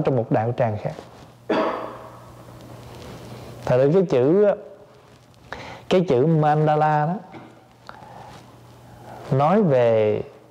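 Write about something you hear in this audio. A middle-aged man speaks calmly and slowly into a microphone, with pauses between phrases.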